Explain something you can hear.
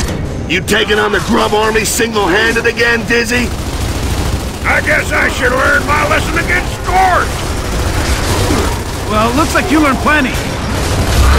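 Men talk with animation.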